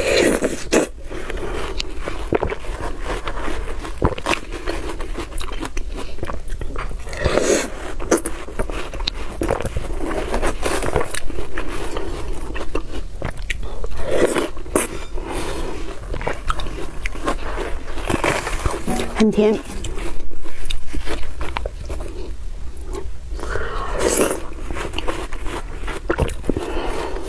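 A young woman chews juicy watermelon close to a microphone, with wet crunching sounds.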